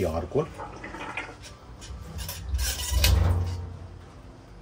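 Metal parts knock and scrape as they are handled.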